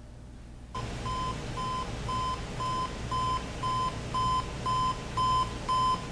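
An alarm clock beeps in steady, evenly spaced bursts that grow slightly louder.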